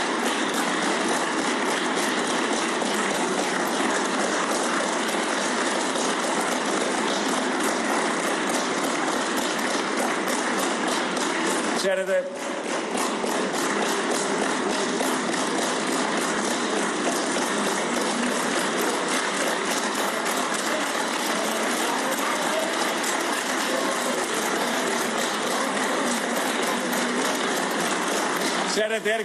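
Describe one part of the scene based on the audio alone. A large crowd applauds steadily in a large echoing hall.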